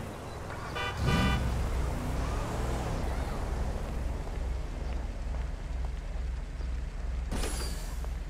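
A car engine idles with a low, pulsing throb.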